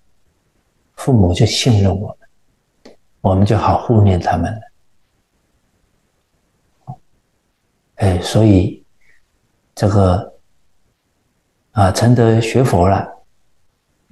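A middle-aged man speaks calmly and deliberately into a microphone, with pauses between phrases.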